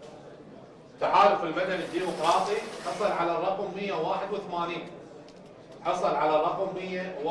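A man announces through a microphone.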